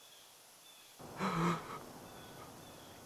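A young man gasps in alarm.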